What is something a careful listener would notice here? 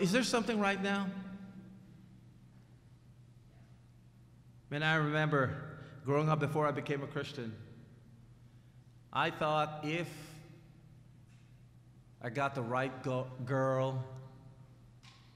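A middle-aged man speaks with animation through a microphone, pausing often, in a room with some echo.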